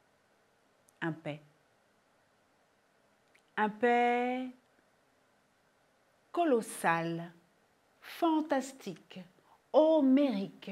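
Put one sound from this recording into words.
A woman speaks expressively in short bursts, close to a microphone.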